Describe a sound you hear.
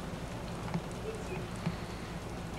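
A young girl squeals briefly.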